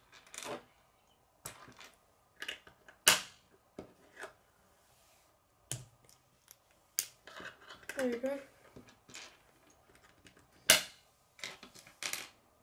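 Plastic construction pieces click and snap together on a wooden surface.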